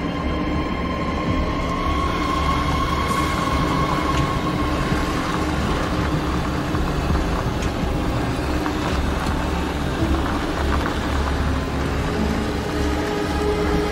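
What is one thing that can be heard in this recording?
A heavy vehicle's engine hums steadily as it drives.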